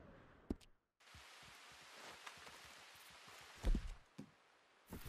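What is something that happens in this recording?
Footsteps rustle through tall grass outdoors.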